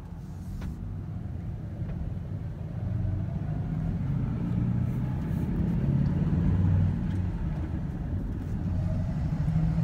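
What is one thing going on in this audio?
A vehicle engine grows louder as the car speeds up and drives along.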